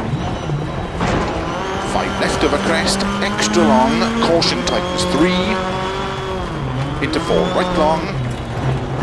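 Stones and gravel rattle against the underside of a car.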